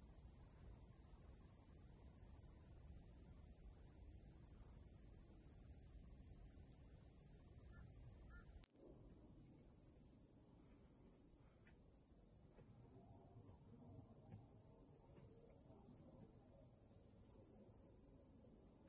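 Wind rustles softly through leaves outdoors.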